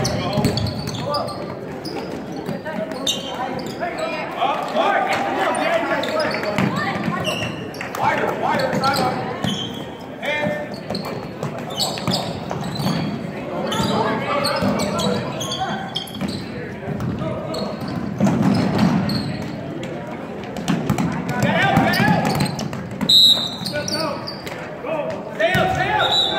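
A crowd of spectators chatters and calls out throughout.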